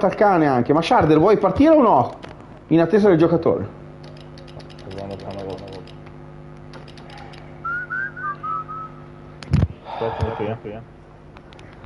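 A young man talks animatedly into a microphone, close by.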